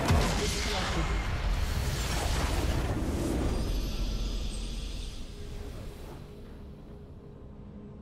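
A massive game explosion booms and rumbles, then slowly fades.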